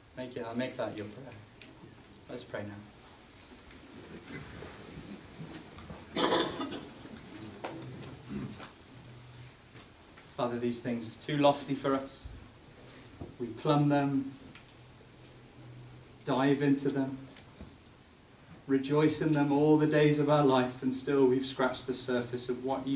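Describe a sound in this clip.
A young man reads aloud calmly, in short phrases with pauses.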